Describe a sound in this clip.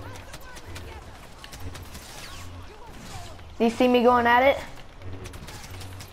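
A lightsaber swings with a buzzing hum.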